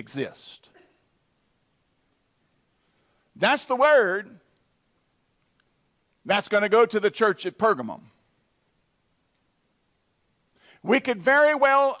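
A middle-aged man preaches with emphasis through a microphone, pausing between phrases.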